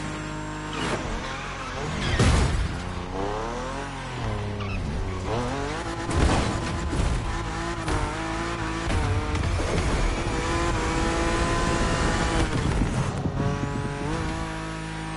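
A car engine revs up and down sharply.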